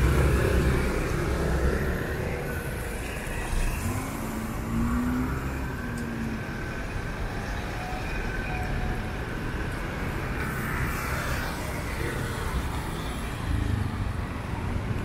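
Motorbike engines putter past on a street.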